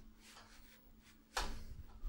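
A finger presses an elevator button with a click.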